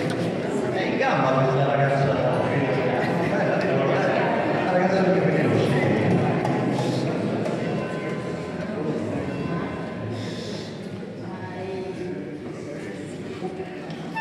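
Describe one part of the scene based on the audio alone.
A group of women and men sing together in an echoing hall.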